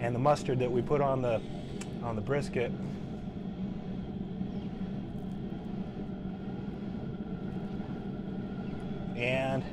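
Liquid drizzles into an aluminium foil pan.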